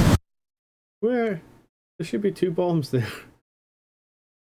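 A young man speaks casually into a microphone, close up.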